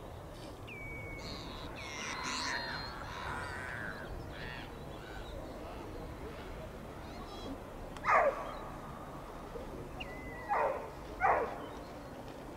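Shorebirds call with high, piping whistles.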